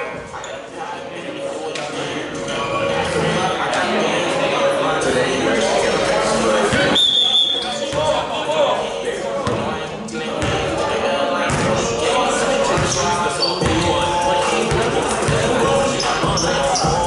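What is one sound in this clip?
Men shout and call out across an echoing gym.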